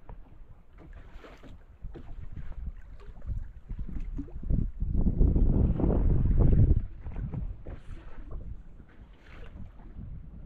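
Wind gusts across open water.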